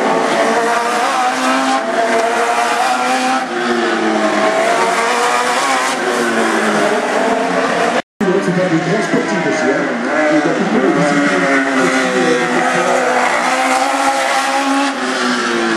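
Race car engines roar and whine loudly, rising and falling in pitch as the cars speed past.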